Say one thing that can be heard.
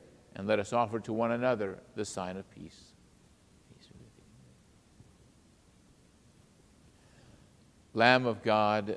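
An elderly man speaks calmly through a microphone in a reverberant hall.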